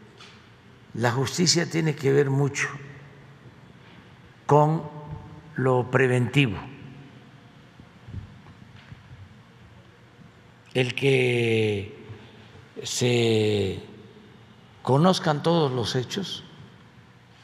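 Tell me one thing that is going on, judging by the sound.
An elderly man speaks slowly and calmly into a microphone, with long pauses.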